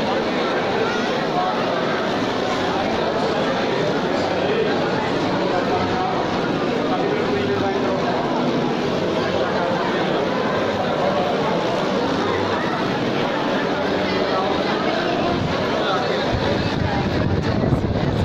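A crowd of men and women chatters loudly in a large echoing hall.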